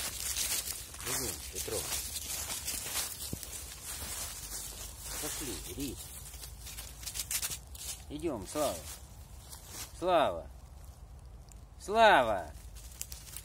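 A dog whines in high, rising yelps.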